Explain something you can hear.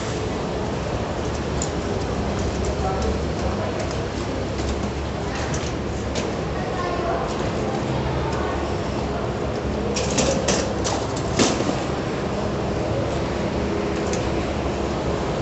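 A shopping cart rattles as it rolls over a hard floor, echoing in a large hollow space.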